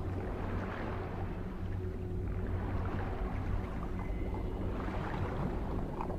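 Muffled water rumbles and bubbles all around.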